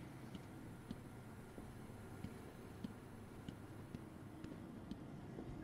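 Heavy footsteps thud on a hard floor at a steady walking pace.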